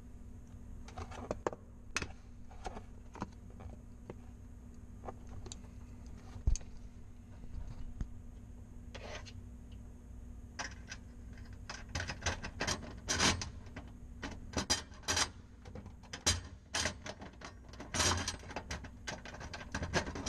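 Metal parts click and clatter close by.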